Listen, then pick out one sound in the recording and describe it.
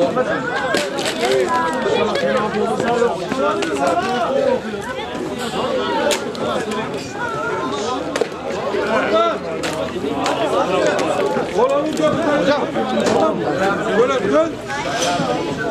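A football thumps as it is kicked.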